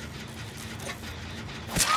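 A machine clanks and rattles as it is worked on.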